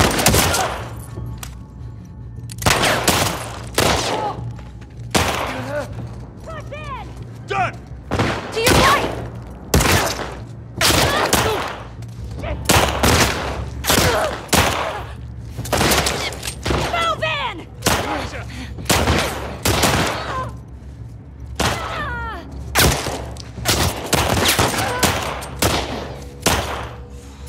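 Gunshots ring out repeatedly, close by and echoing.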